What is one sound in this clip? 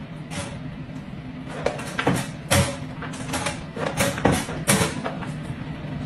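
A metal crate door rattles and clanks.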